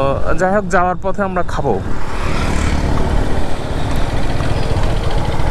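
A motorbike engine hums steadily along the road.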